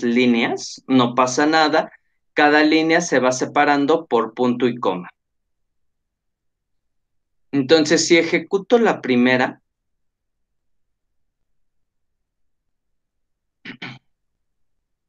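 A man speaks calmly through a microphone on an online call, pausing now and then.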